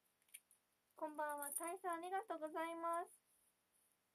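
A young woman speaks briefly in a bright, lively voice close by.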